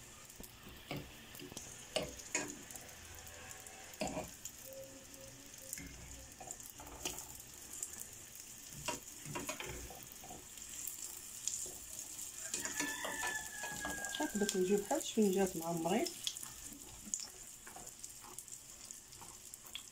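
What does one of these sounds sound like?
A metal fork clinks and scrapes against a frying pan.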